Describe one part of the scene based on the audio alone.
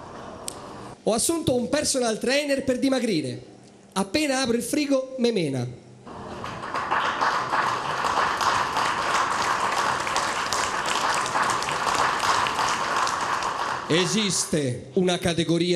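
A man speaks with animation into a microphone, heard through a loudspeaker in a hall.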